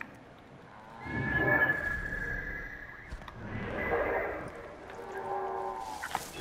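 An eagle screeches loudly.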